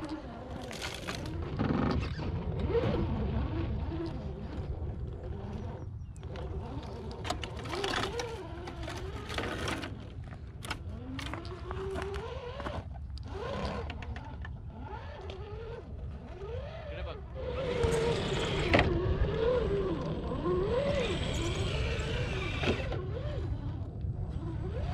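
A small electric motor whines, rising and falling in pitch.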